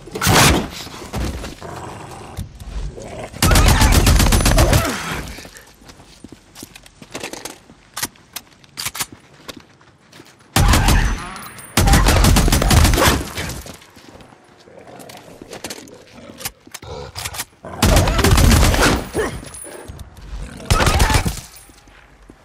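Rapid bursts of rifle fire ring out.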